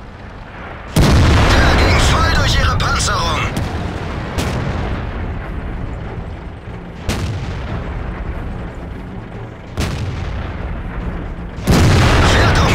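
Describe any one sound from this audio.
A tank cannon fires with a deep, booming blast.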